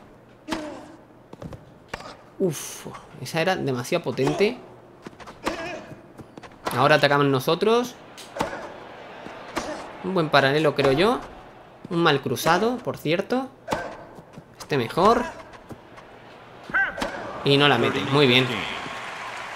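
A tennis ball is struck sharply back and forth with rackets.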